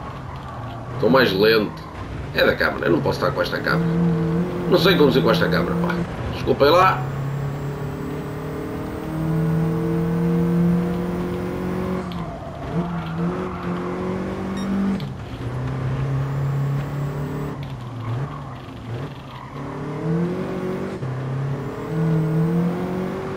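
A racing car engine roars, rising in pitch and dropping as it shifts gears.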